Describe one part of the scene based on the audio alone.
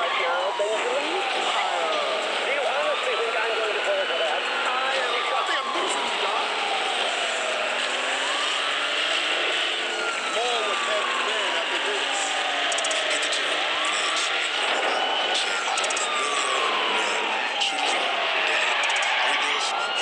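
A police siren wails in repeated falling sweeps.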